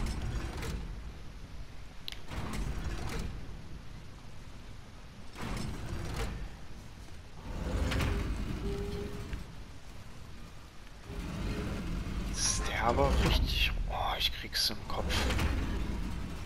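A heavy mechanism grinds and rumbles as it slowly turns.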